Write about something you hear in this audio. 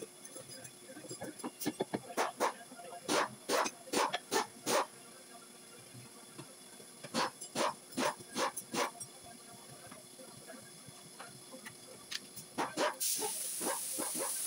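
A pneumatic wrench rattles in short bursts.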